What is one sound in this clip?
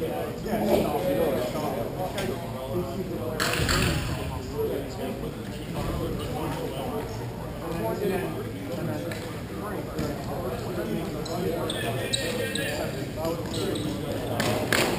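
Skates scrape and roll across a rink floor in a large echoing hall.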